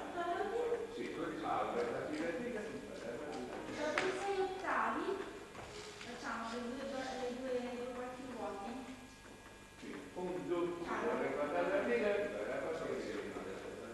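An accordion plays a melody.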